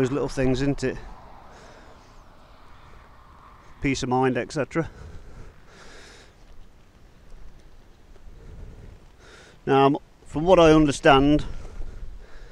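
A man talks calmly and close to the microphone, in short bursts.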